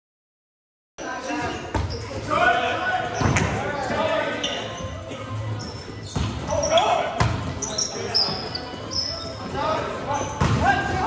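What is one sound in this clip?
Men call out and shout to each other in a large echoing gym.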